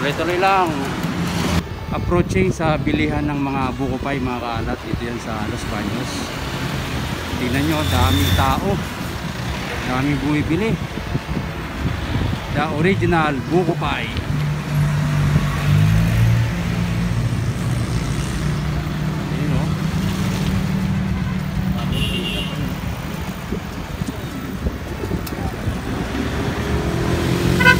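Traffic engines hum and rumble steadily along a road.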